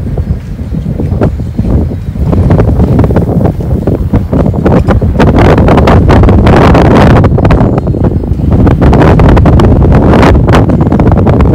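Strong wind buffets the microphone outdoors, gusting loud and rough.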